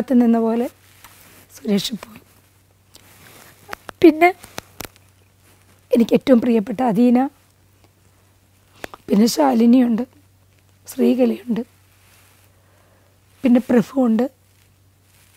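A woman speaks calmly and close to a microphone, in short phrases with pauses.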